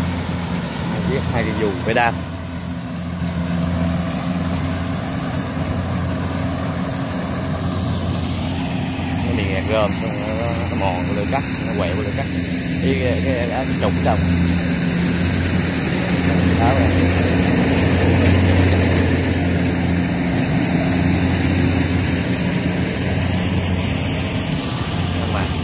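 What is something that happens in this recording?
A combine harvester engine drones loudly and steadily close by.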